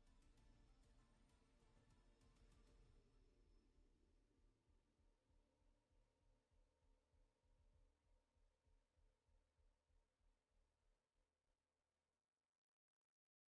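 Electronic music with a pulsing low beat plays and slowly fades out.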